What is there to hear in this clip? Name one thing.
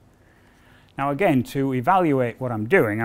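An older man speaks calmly and clearly into a microphone close by.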